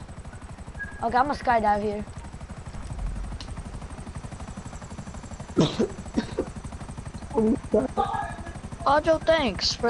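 A helicopter's rotor thumps in a fast, steady beat.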